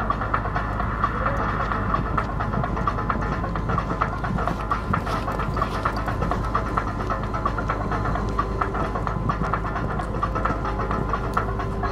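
A horse's hooves thud rhythmically on soft sand as it canters.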